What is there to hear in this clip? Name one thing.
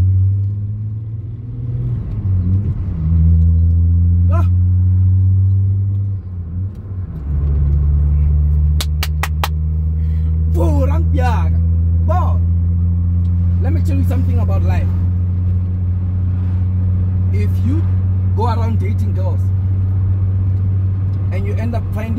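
A car engine hums steadily while driving, its pitch shifting with gear changes.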